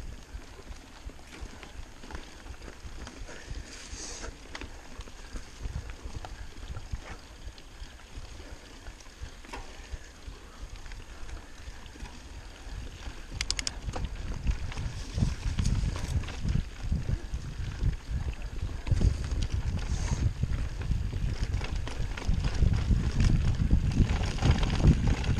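Bicycle tyres crunch and rattle over dry leaves on a bumpy trail.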